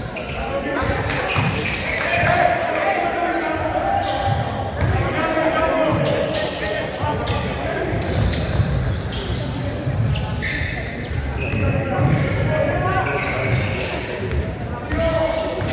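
A crowd of spectators cheers and shouts.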